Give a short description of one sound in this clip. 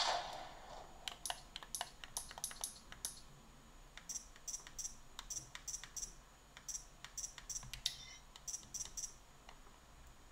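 Short menu clicks tick quickly from a handheld console.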